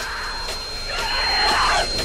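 A young woman screams in panic.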